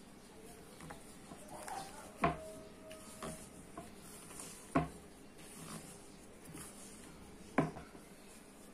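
A hand squishes and kneads soft, sticky dough in a bowl.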